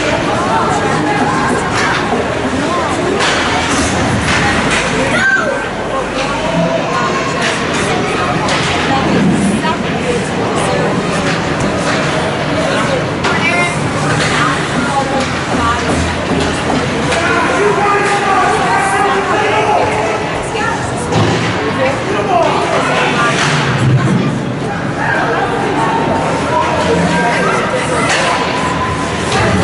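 A crowd of spectators and players chatters and calls out in an echoing hall.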